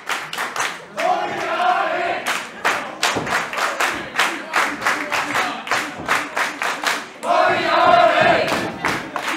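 A crowd chants loudly in an echoing hall.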